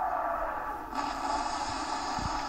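Shells splash into water with a loud burst.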